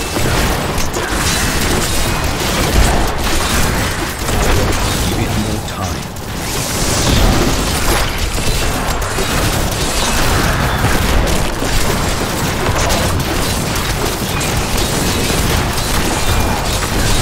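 Weapons clash and slash rapidly in a fierce fight.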